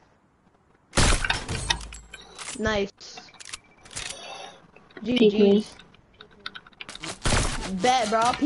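A sniper rifle fires a loud shot.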